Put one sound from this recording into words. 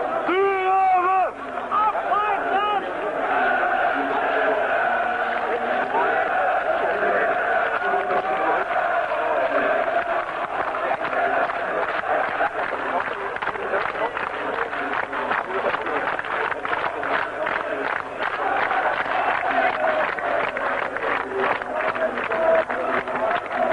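A large stadium crowd chants loudly outdoors.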